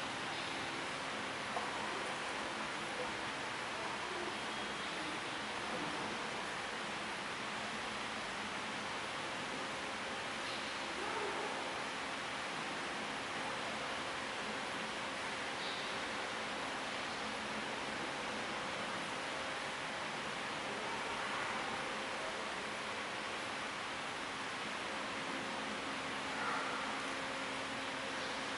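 An elderly man reads out slowly and calmly through a microphone in a large echoing hall.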